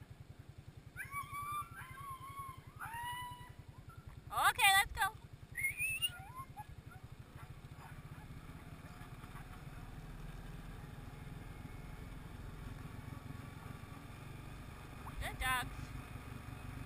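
Dogs yip and howl excitedly.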